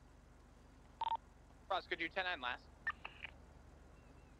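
A phone beeps and clicks as its menu opens.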